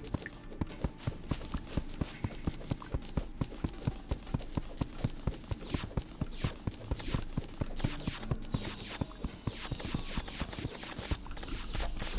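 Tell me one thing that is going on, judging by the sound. Rapid, punchy video game hit sounds thump over and over as enemies take damage.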